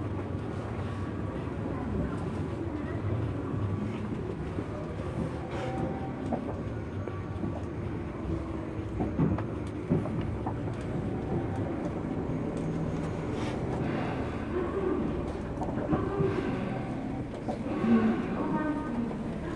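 A train rumbles steadily along a platform.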